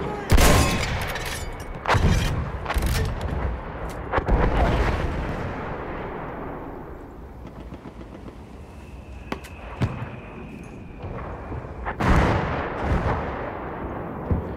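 Loud explosions boom and rumble nearby.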